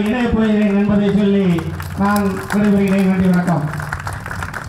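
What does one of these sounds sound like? A middle-aged man speaks forcefully into a microphone over loudspeakers.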